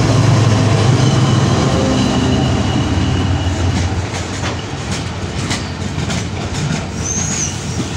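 A train engine rumbles as it moves away and fades.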